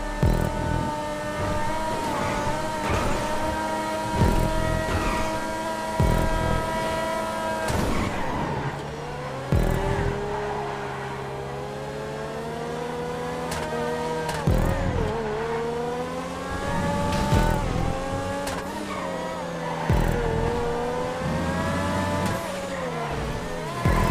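A sports car engine revs high and shifts gears.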